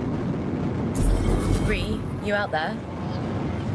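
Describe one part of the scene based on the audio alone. A spacecraft boosts with a sudden whooshing burst.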